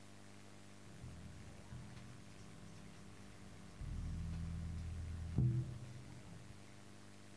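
A bass guitar plays a few low notes through an amplifier.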